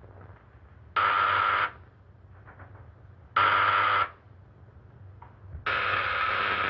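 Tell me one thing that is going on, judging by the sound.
An electric buzzer sounds in loud, long bursts.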